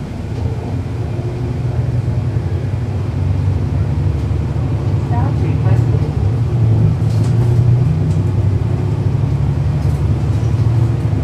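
A bus engine idles with a steady low rumble close by.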